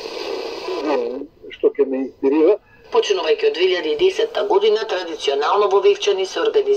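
A radio loudspeaker plays a voice singing or speaking clearly.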